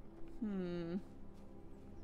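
A young woman makes a short, sliding exclamation close to a microphone.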